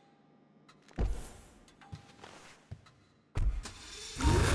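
A car door opens and shuts with a thud.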